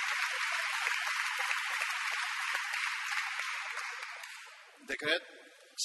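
A crowd applauds in a large hall, then the clapping fades away.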